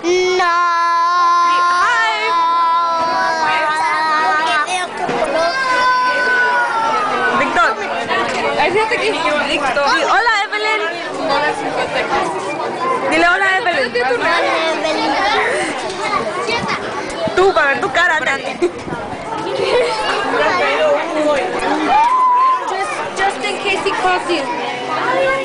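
Children chatter and shout in the background.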